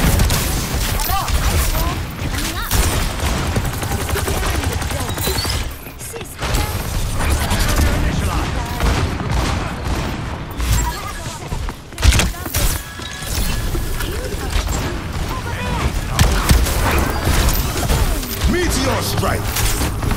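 Gunfire from a video game rifle rattles in quick bursts.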